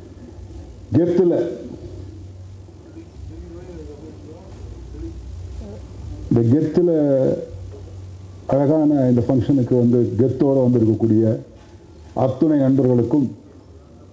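A man speaks with animation into a microphone over loudspeakers.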